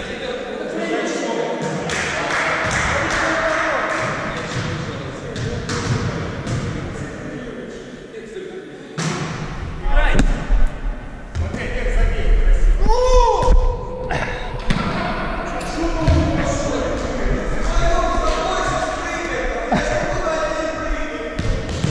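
Young men and women talk and call out in a large echoing hall.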